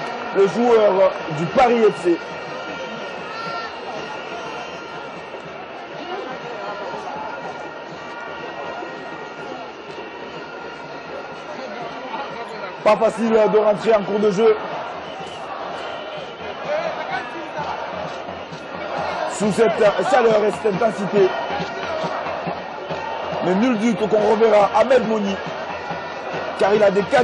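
A stadium crowd murmurs and hums in a large open space.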